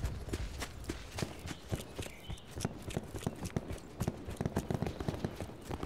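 Footsteps run on hard pavement.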